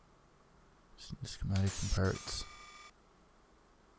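A menu chimes and whooshes open.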